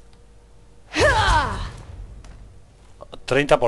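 A blade slashes into a body.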